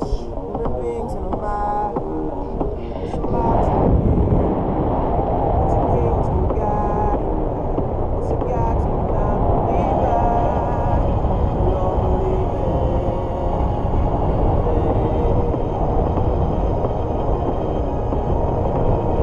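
Wind roars and buffets loudly against a microphone.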